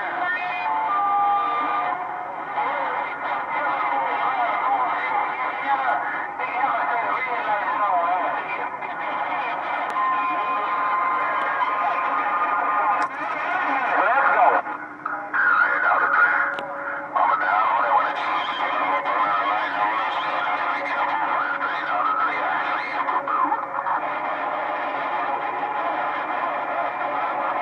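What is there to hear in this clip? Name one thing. A CB radio plays hissing static and warbling transmissions through a loudspeaker.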